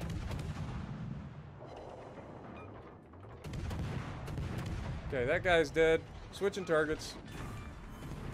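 Heavy naval guns boom with a deep rumble.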